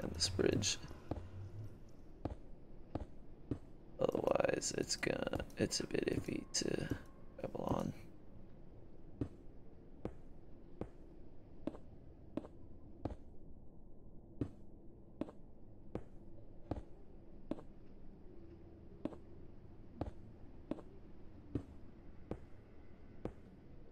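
Stone blocks are placed one after another with soft, regular thuds.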